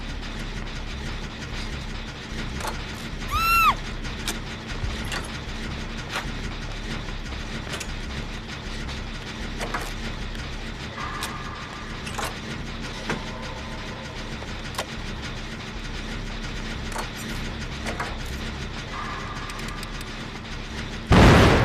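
A generator clanks and rattles as it is being repaired.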